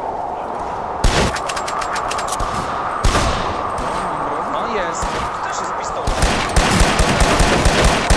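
Gunshots fire in sharp bursts, with a rapid volley near the end.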